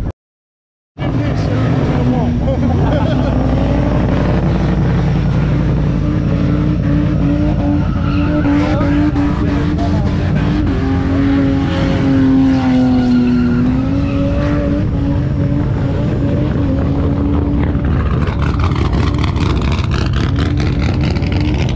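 A supercharged V8 car engine idles with a heavy rumble.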